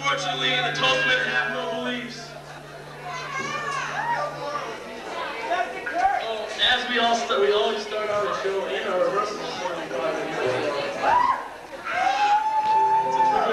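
Electric guitars play loudly on a live stage.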